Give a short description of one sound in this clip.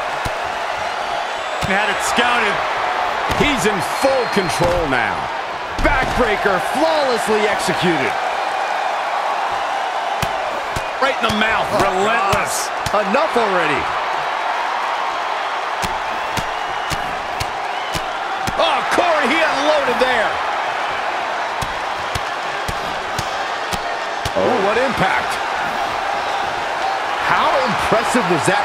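A crowd cheers and murmurs steadily in a large arena.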